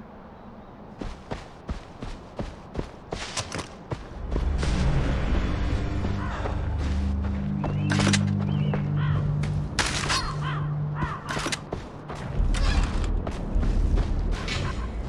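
Footsteps rustle through grass and crunch on gravel.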